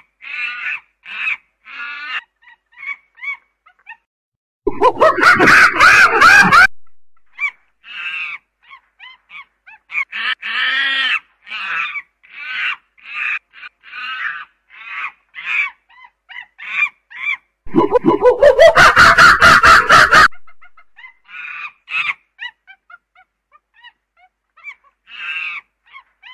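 A chimpanzee shrieks close by in loud, rising bursts.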